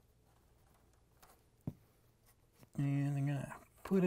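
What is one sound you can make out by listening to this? A plastic connector clicks as it is pulled off.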